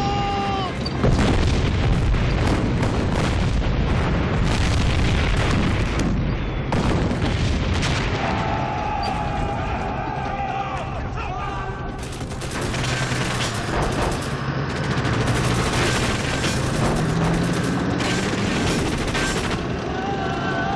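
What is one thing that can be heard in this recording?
Explosions and gunfire boom and crack repeatedly.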